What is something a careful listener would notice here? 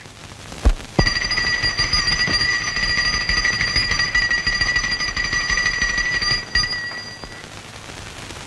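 A small hand bell rings steadily.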